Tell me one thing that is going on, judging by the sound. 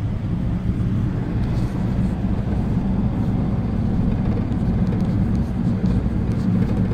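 A vehicle's engine rumbles steadily from inside as it drives along a road.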